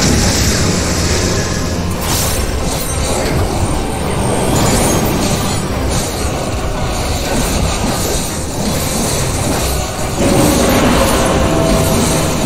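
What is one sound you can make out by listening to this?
Loud game music and battle effects play throughout.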